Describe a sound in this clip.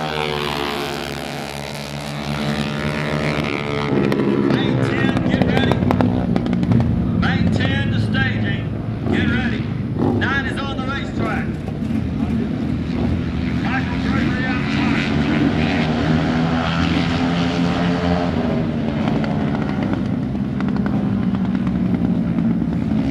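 A motorcycle engine revs and roars as it races around a dirt track.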